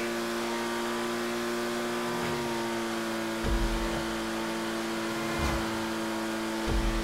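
A sports car engine hums steadily as it drives along.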